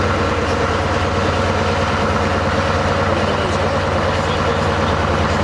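A heavy truck diesel engine rumbles steadily at close range.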